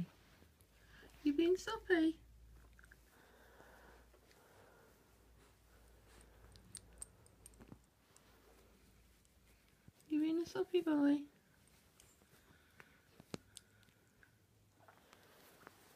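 A dog chews and gnaws on a soft toy close by.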